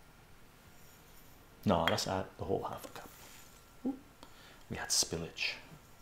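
A metal lid clinks against a glass jar.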